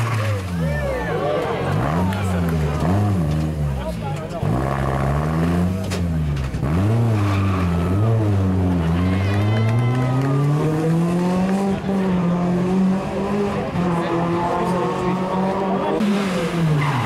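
A rally car engine revs hard, its pitch rising and falling with quick gear changes, then fades away.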